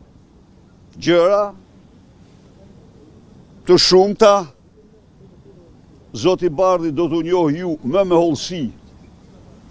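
An elderly man speaks in short bursts into microphones close by, outdoors.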